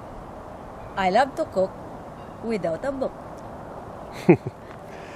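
A woman speaks cheerfully and close by.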